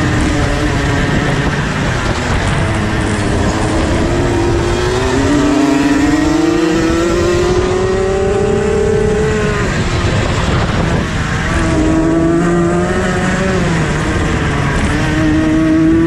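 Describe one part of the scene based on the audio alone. A kart engine revs loudly up and down close by.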